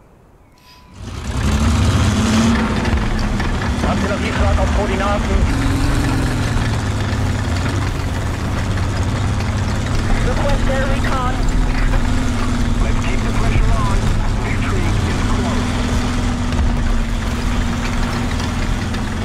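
A tank engine rumbles and roars steadily.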